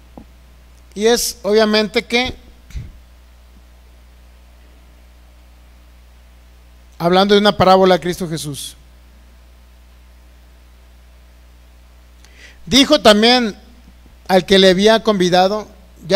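A man speaks into a microphone with slow, deliberate pauses, heard through a loudspeaker.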